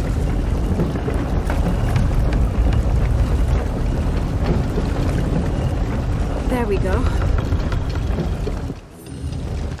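A heavy wooden wheel creaks and grinds as it turns with a deep rumble.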